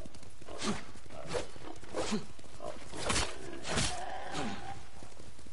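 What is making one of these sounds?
Horse hooves thud on leaf-covered ground at a gallop.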